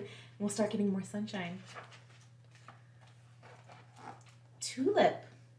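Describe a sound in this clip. A young woman reads aloud expressively into a microphone.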